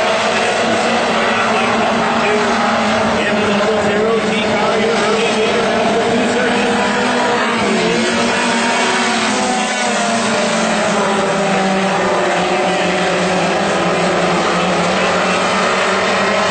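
Several V8 dirt modified race cars roar past at racing speed.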